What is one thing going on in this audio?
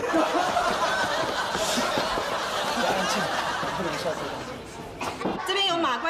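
A crowd of young people chatter and laugh close by.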